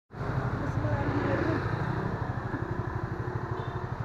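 A car drives past on the road.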